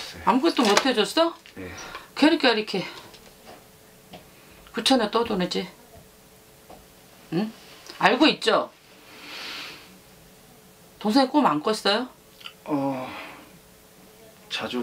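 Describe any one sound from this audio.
A woman speaks close by in short, emotional bursts with pauses.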